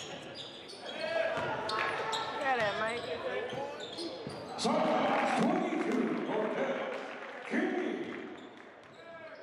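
Spectators cheer and shout in an echoing gym.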